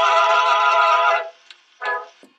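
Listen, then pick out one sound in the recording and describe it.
A cylinder phonograph plays a tinny, scratchy tune.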